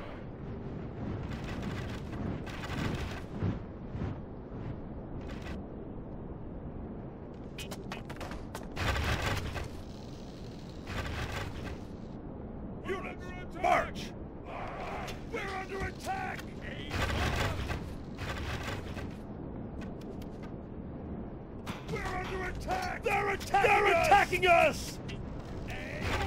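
Many armoured soldiers tramp across grass.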